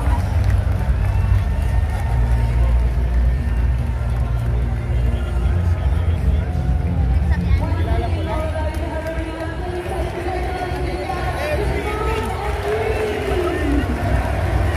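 A large arena crowd cheers and murmurs, echoing in a big hall.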